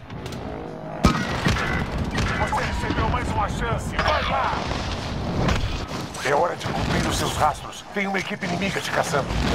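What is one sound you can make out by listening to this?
Wind rushes loudly during a parachute descent.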